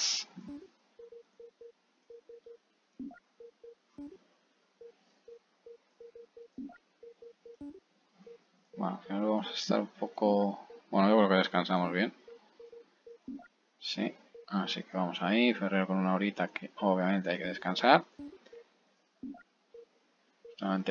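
Short electronic beeps sound as menu values change.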